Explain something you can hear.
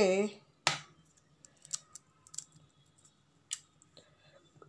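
Metal utensils clink and knock against a bowl.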